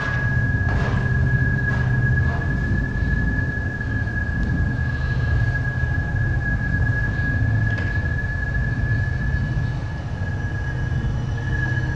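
A steady high electronic tone whines throughout.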